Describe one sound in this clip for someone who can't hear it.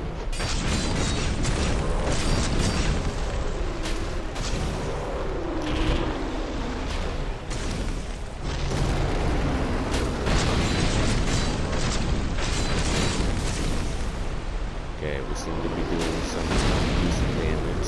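Heavy blows crash and thud against the ground.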